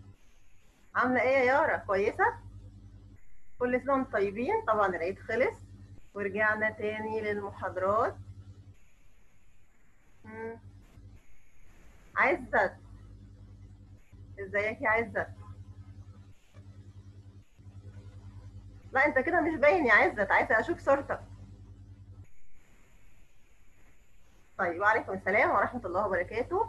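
A young woman speaks warmly into a headset microphone over an online call.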